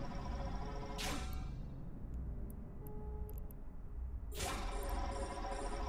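A spaceship explodes with a sudden loud blast.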